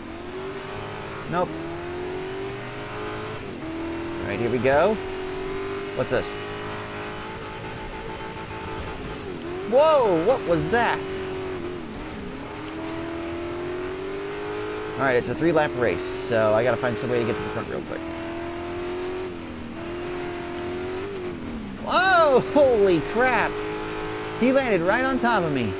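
A racing engine drones steadily, rising and falling in pitch as it shifts gears.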